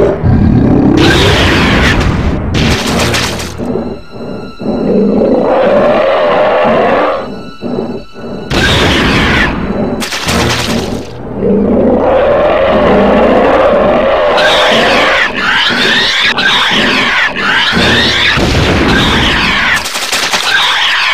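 Magical energy bursts with a loud, bright whooshing crackle.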